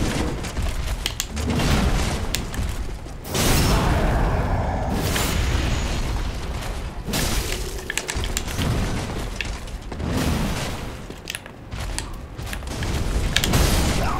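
Metal armour clanks as fighters clash.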